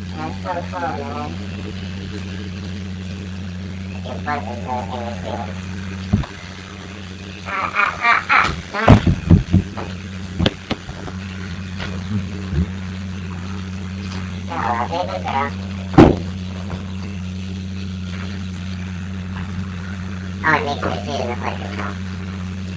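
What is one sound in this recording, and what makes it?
Water sprays from a shower hose onto a dog.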